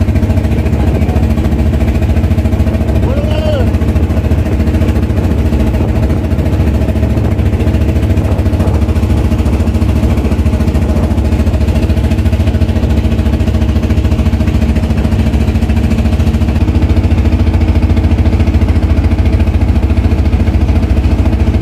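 A boat engine hums steadily close by.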